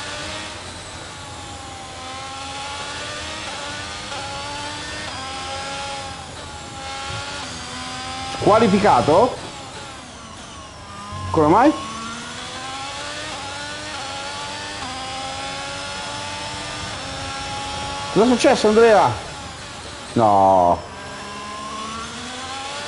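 A racing car engine whines, rising and falling in pitch as it shifts gears.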